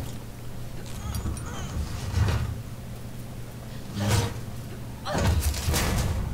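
A metal panel thuds and scrapes as it is pushed.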